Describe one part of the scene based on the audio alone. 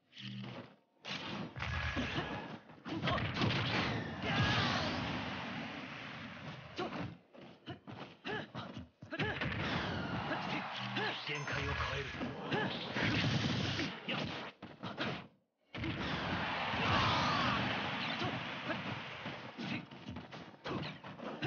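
Fighting game hits and blasts crack and whoosh in quick bursts.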